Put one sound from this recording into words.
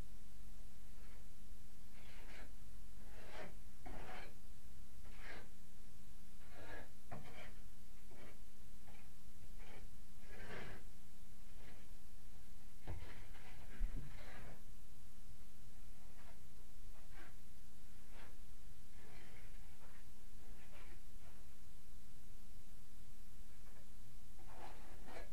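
A scraper scrapes old paint off a wall in short, rasping strokes.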